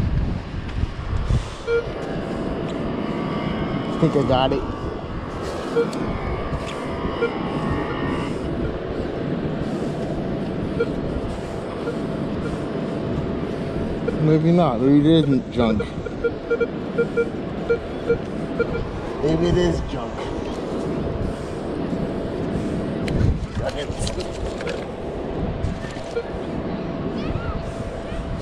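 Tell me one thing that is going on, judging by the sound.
A metal detector hums with a steady tone.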